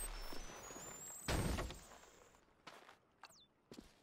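A box is lifted with a dull thud.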